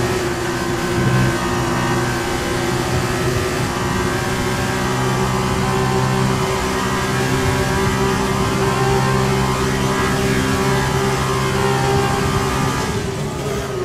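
A racing car engine screams steadily at high revs, close up.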